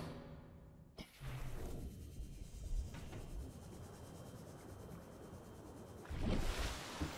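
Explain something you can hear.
A small underwater vehicle hums steadily as it moves through water.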